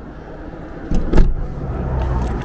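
A vehicle door slams shut.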